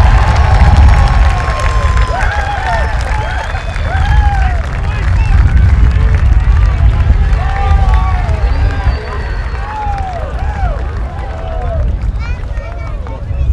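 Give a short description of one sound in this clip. A large crowd cheers and whoops outdoors.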